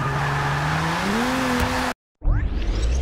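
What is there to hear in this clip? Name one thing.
Tyres screech in a skid.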